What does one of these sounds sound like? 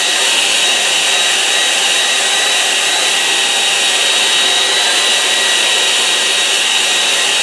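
A hair dryer blows with a steady loud whir.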